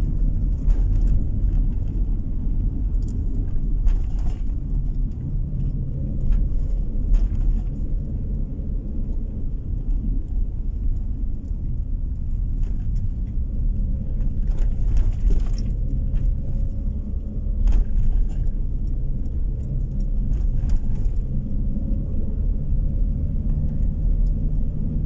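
Tyres rumble on rough asphalt.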